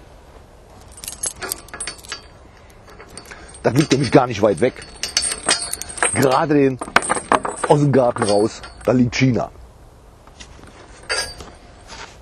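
A metal gate latch rattles and clicks.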